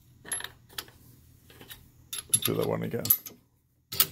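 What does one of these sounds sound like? A rifle bolt clacks open and shut.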